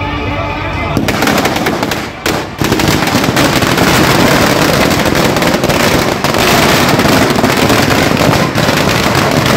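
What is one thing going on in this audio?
Firecrackers burst and crackle in rapid bursts close by.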